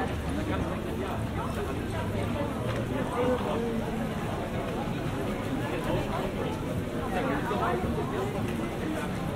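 Footsteps tap on pavement nearby.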